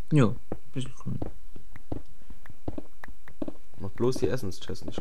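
A pickaxe digs into stone with quick crunching knocks.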